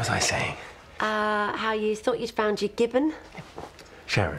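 A woman laughs loudly and happily.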